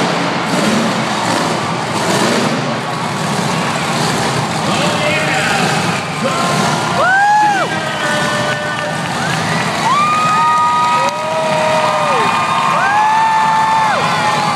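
A crowd cheers and shouts in the stands.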